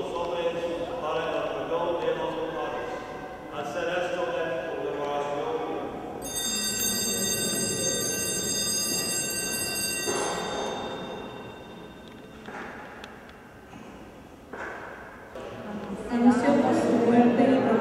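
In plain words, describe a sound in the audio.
A man chants a prayer aloud in a large echoing hall.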